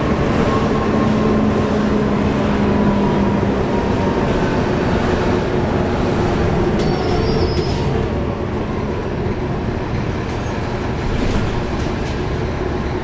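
Loose fittings rattle inside a moving bus.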